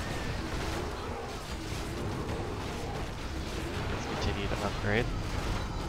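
Weapons clash and strike in a battle.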